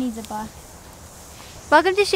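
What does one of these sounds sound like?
Hooves thud softly on sand as a horse walks.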